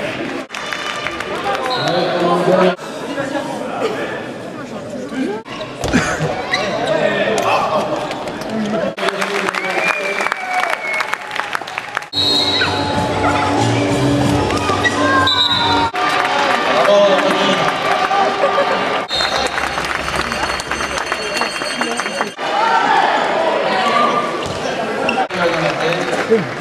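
A large crowd murmurs and cheers in a big echoing hall.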